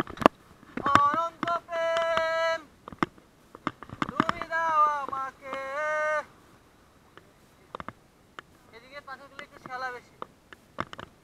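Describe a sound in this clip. Men call out loudly nearby outdoors.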